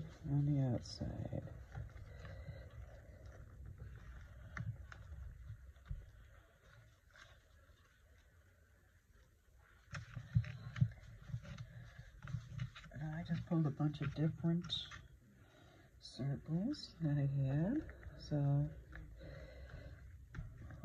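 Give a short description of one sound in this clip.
Hands rub and press paper flat onto a page with a soft rustle.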